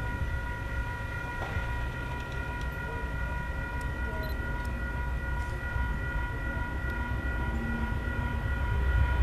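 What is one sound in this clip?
A diesel locomotive rumbles as it approaches, growing louder.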